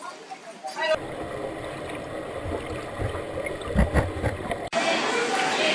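Water gurgles and rumbles, muffled underwater.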